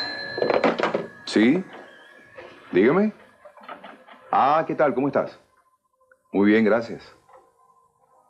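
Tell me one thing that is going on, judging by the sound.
A man talks calmly into a telephone.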